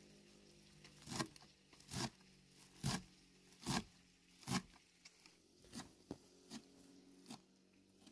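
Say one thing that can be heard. A knife chops green onions on a wooden board with sharp knocks.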